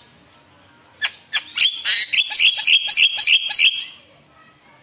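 A bird calls loudly up close with rapid, harsh, rattling chirps.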